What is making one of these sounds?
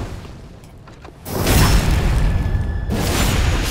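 A sword slashes and clangs against armour.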